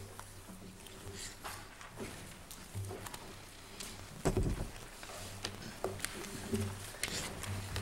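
A man's footsteps tap across a hard floor.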